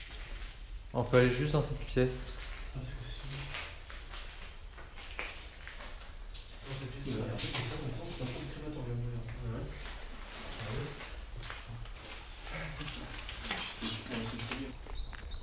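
Young men talk nearby in an echoing room.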